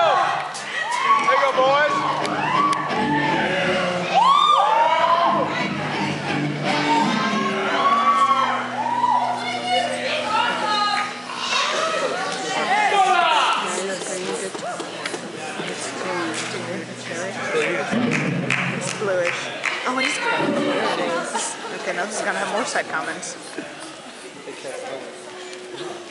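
A band plays with drums and guitars.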